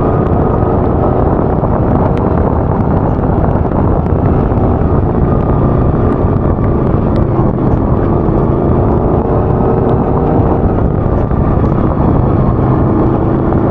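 Wind buffets hard against a microphone.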